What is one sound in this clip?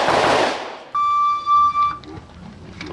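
A shot timer gives a long electronic beep.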